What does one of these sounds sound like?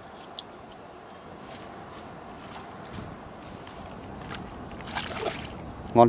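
A fishing reel ticks as line is wound in.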